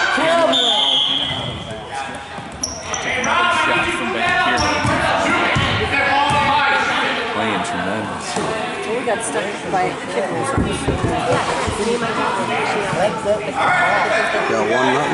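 Children and adults talk and shout across a large echoing gym.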